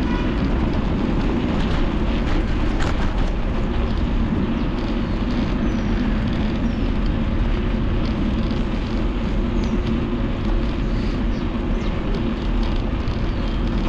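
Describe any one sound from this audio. Strong wind rushes and buffets loudly throughout.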